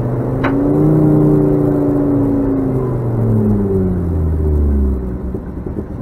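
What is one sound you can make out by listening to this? A car engine roars loudly from inside the cabin, its pitch falling as the car slows.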